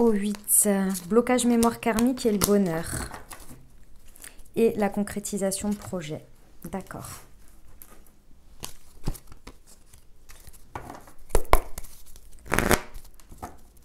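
Cards are laid down on a table with soft taps and slides.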